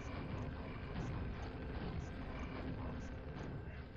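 A rocket explosion booms and rumbles.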